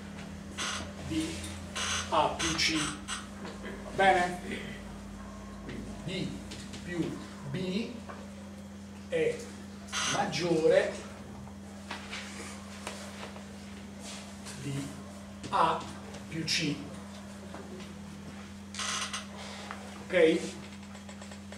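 An elderly man speaks calmly, lecturing.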